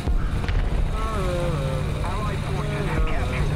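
A man speaks casually into a microphone.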